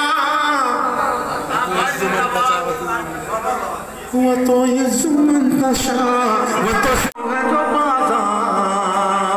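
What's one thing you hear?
A man recites with animation into a microphone, heard through loudspeakers in an echoing hall.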